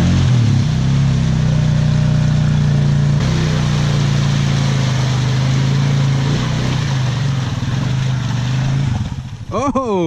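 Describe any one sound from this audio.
An all-terrain vehicle's engine runs loudly close by.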